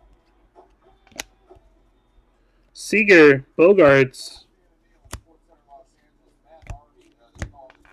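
Trading cards rustle and flick as hands shuffle through them.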